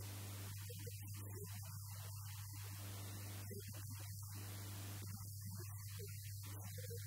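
A middle-aged man speaks into a handheld microphone.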